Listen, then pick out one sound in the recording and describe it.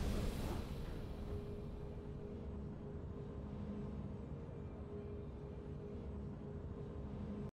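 A triumphant game fanfare bursts out and then holds a low, steady drone.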